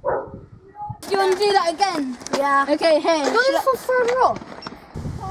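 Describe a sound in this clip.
A young boy talks with animation close by.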